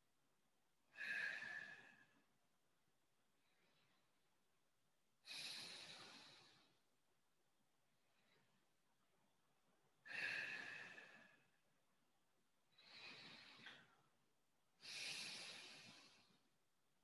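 A young man breathes out slowly and deeply.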